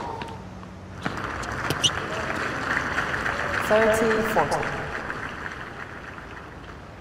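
A crowd cheers and applauds loudly, then fades.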